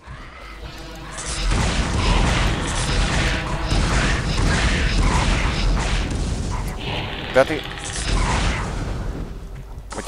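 Creatures shriek and hiss nearby.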